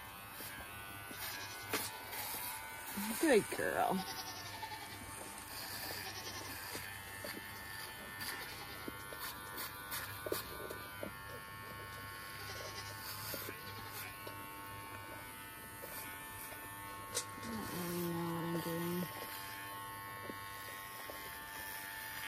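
A grooming glove brushes softly over a goat's coat.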